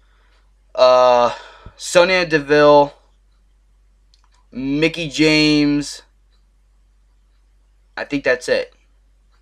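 A young man speaks close to a microphone, with animation, in short bursts.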